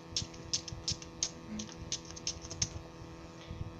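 Plastic toy pieces click as a hand handles them.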